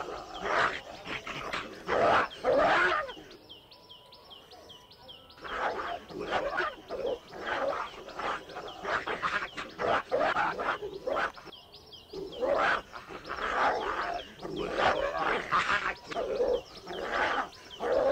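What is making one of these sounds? Paws scuffle on loose dirt.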